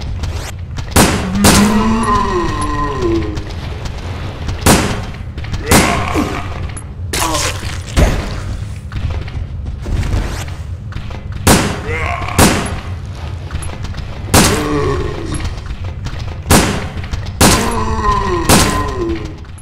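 A handgun fires sharp single shots in a hallway with a short echo.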